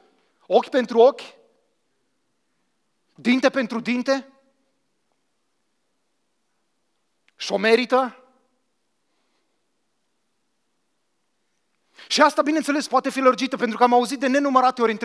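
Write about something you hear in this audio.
A man speaks into a microphone in short bursts with long pauses, then more animatedly.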